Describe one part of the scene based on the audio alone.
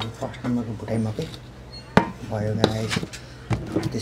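A metal pan clanks down on a table.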